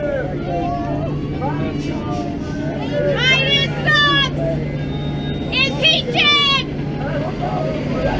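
A large bus engine rumbles as the bus passes close by.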